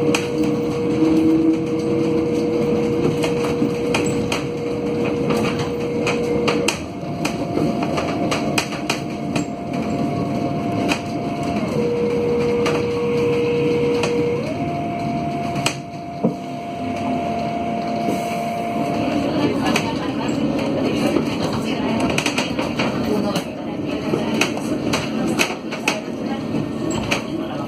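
A bus engine hums steadily as the bus drives through traffic.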